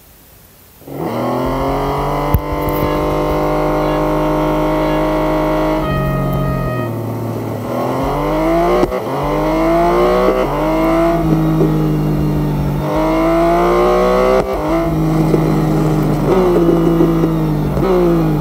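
A race car engine idles and then roars, rising and falling in pitch as the car shifts gears.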